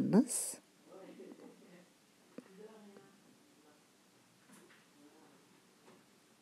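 Hands softly knead and roll dough on a mat.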